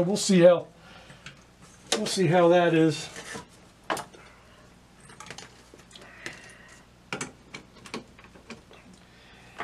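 A metal panel knocks and clatters as hands handle it.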